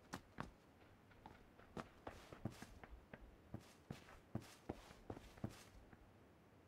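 Footsteps patter quickly across a hard surface.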